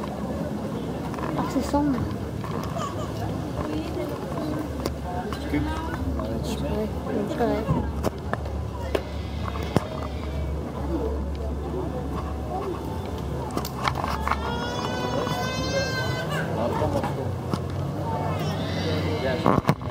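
A crowd of people chatters throughout a large indoor hall.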